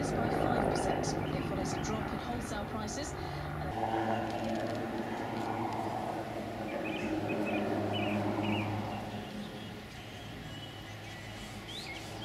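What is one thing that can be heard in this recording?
A helicopter's engine whines and drones, rising and falling as it turns.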